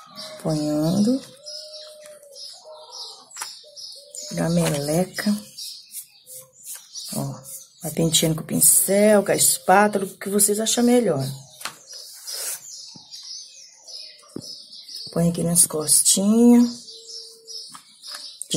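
Gloved fingers rub and scrape softly over a dry, crumbly surface.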